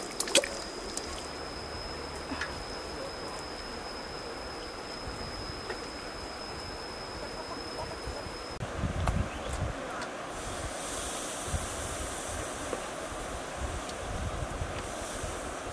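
A stream trickles gently outdoors.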